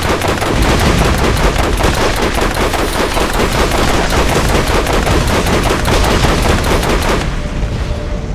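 A heavy gun fires in rapid, loud bursts.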